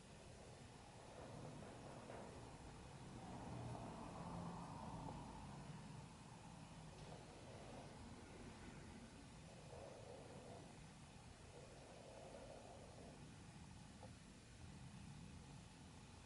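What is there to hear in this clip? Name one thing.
A man speaks softly and slowly into a microphone in a large echoing room.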